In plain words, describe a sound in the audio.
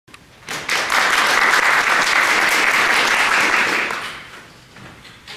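An audience applauds in a room with a slight echo, then the clapping dies away.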